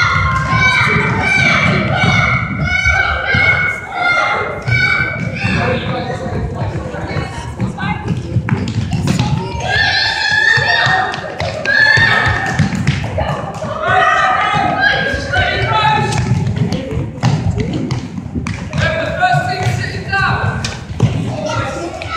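Children shout and call out in a large echoing gym.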